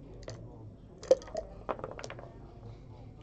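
Dice rattle and clatter onto a wooden board.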